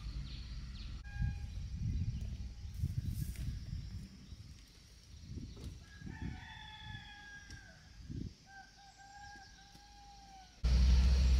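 Leaves rustle and snap.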